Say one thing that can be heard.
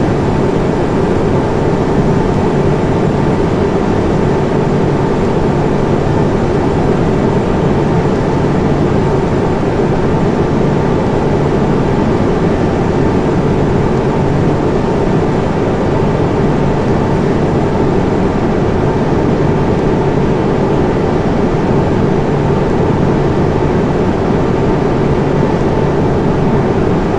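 A jet airliner's engines roar steadily in flight.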